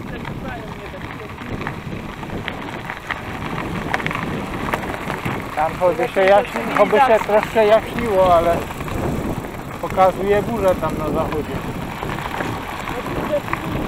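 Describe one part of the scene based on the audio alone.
Bicycle tyres crunch and rumble over a gravel track.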